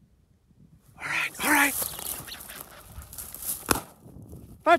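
A bird's wings flap loudly as it bursts into flight.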